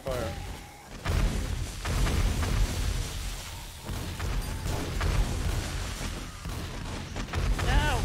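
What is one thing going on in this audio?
Gunshots crack rapidly.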